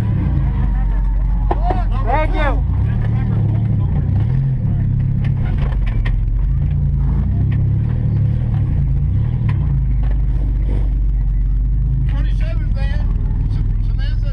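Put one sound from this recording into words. A car engine roars loudly and revs up and down.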